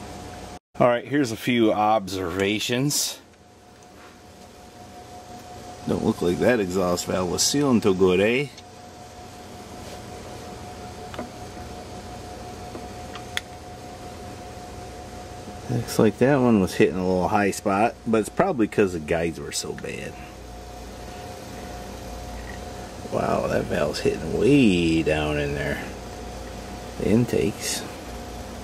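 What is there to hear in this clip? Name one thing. A man talks calmly close by, in short bursts with pauses.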